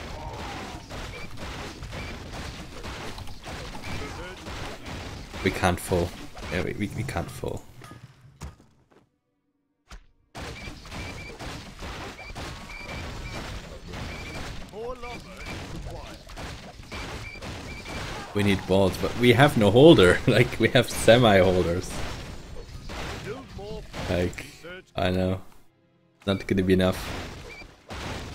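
Swords clash and magic blasts crackle in a busy fight.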